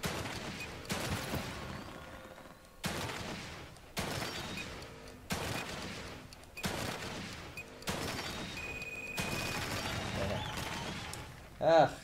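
Gunshots fire in quick bursts, each with a ringing echo.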